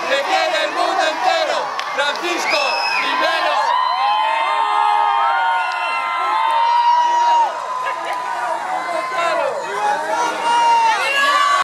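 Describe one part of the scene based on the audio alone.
A large crowd cheers and shouts excitedly outdoors.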